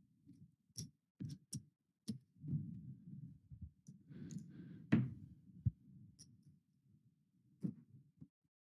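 Casino chips clack onto a table.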